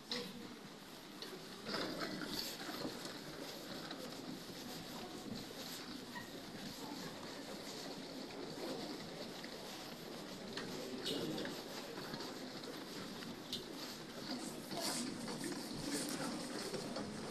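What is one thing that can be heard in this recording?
A moving walkway hums steadily.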